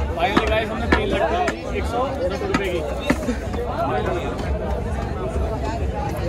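Bamboo poles knock and clack against each other.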